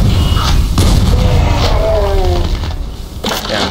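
Flames roar.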